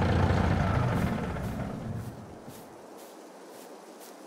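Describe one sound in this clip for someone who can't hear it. Footsteps thud softly on grass at a steady pace.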